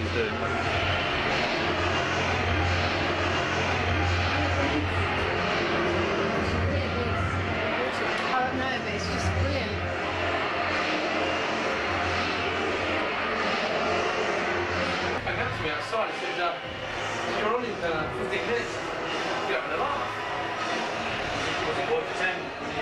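A crowd of men and women chatter and talk over each other close by.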